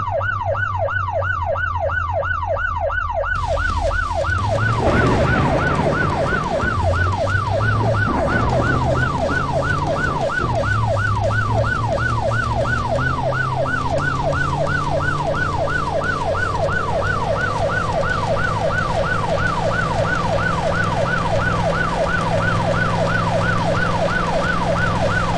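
A police siren wails in a fast rising and falling cycle.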